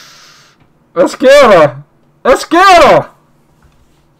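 A man speaks loudly and with animation, close to a microphone.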